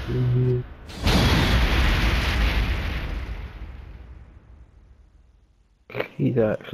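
A loud whooshing crash rings out and slowly fades away.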